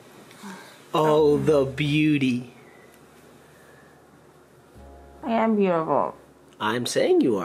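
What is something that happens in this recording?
A young woman speaks close by in a sleepy, drawn-out voice.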